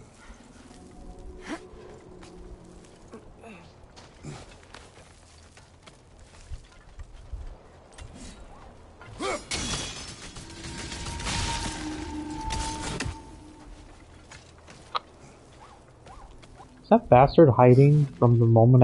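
A climber's hands scrape and grip against rock.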